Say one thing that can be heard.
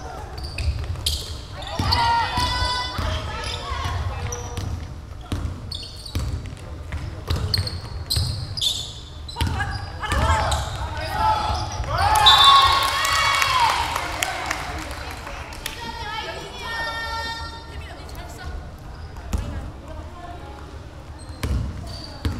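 A basketball bounces on a wooden floor with dull thumps.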